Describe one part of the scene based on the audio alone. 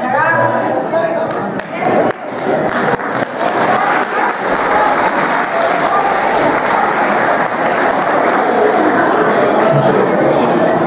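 A group of people murmur and chatter together.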